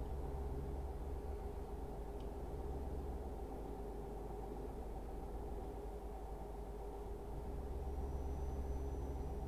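Tyres roll and hum on a road.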